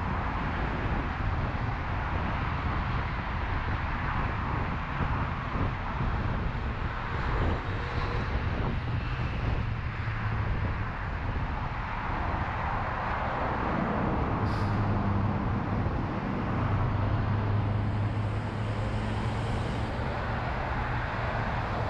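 An engine hums low as a car drives.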